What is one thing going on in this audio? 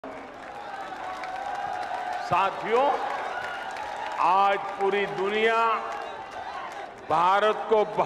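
A large crowd cheers and chants.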